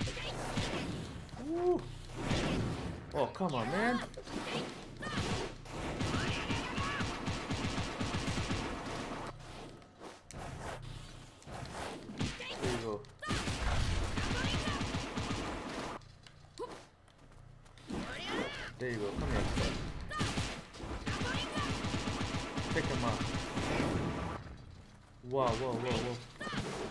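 Game punches and blasts thud and crackle.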